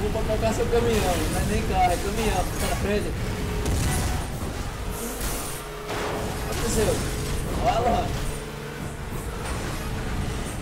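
Cars crash and scrape against each other with metallic crunches.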